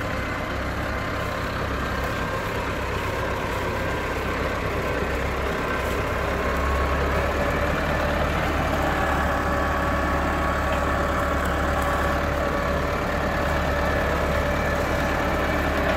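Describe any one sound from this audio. A tractor's implement scrapes and churns through soil.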